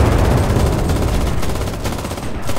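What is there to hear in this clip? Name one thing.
An explosion booms and rumbles in the distance.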